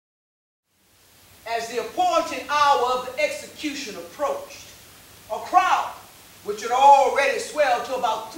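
A woman speaks loudly and with animation.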